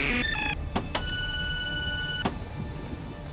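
A steady electronic tone sounds as a spotlight switches on.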